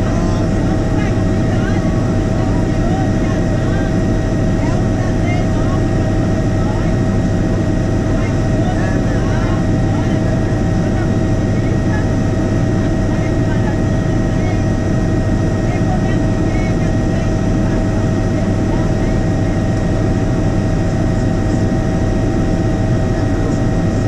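A helicopter's engine and rotor drone loudly and steadily from close by.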